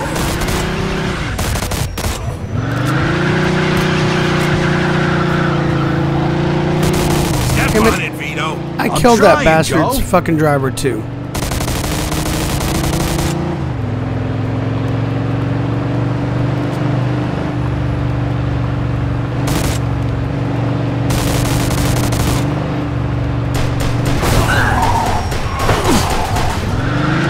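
A car engine roars and revs steadily.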